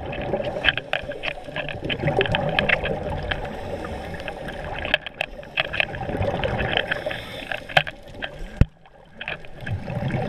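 Scuba breathing bubbles up and gurgles close by.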